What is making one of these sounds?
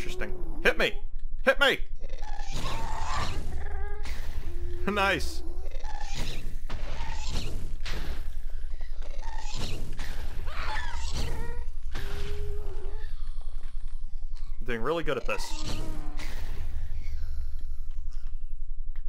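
A sword strikes a creature again and again.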